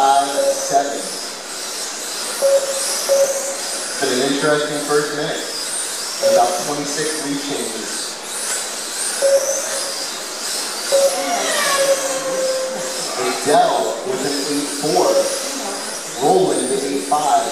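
Small electric model cars whine at high speed, their motors rising and falling in pitch.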